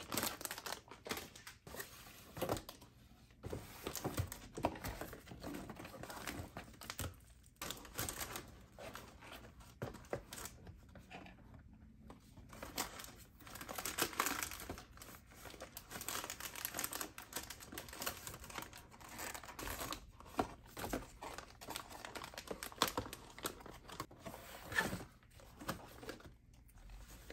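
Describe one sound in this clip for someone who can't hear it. Boxes and jars knock as they are set on a shelf.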